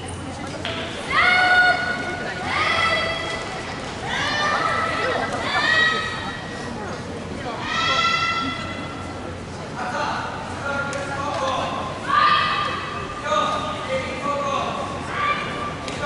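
Young women give sharp, loud shouts in a large echoing hall.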